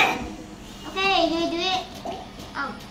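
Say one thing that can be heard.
A young boy talks close to a microphone.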